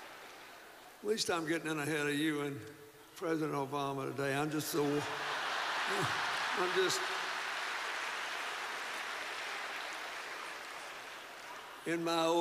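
An elderly man speaks slowly into a microphone in a large hall.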